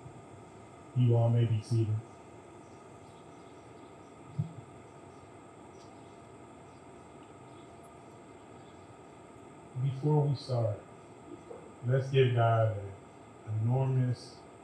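A woman speaks calmly through a microphone, in short bursts.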